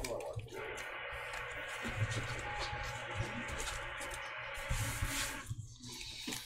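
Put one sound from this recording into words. Playing cards are shuffled and slapped down on a table.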